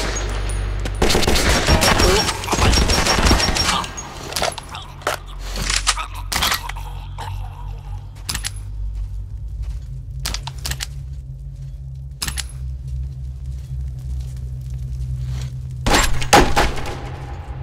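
Rifle shots crack loudly.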